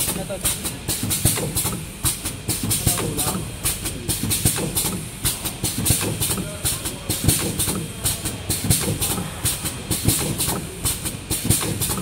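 A packaging machine clicks and clatters rapidly and steadily.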